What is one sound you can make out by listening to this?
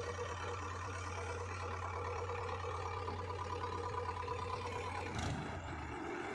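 A backhoe loader's diesel engine rumbles steadily nearby.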